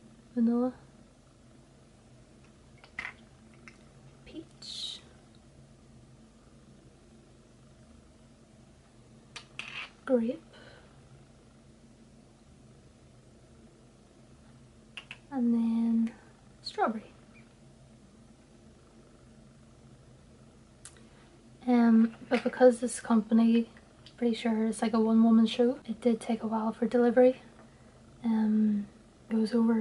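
A young woman talks calmly and close to a microphone, with pauses.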